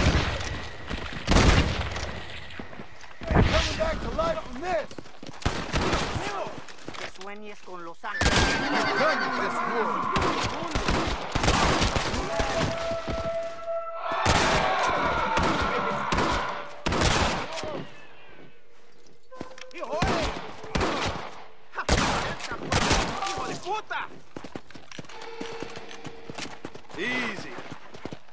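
Horse hooves gallop over dry ground.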